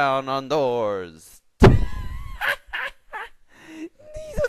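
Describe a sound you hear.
A boy laughs loudly.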